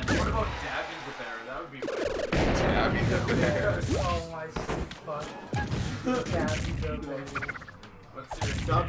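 A young man commentates excitedly through a microphone.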